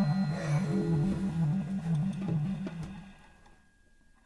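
A double bass plucks a bouncing bass line.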